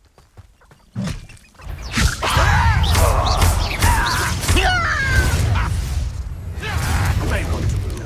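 Spells crackle and blast during a fight.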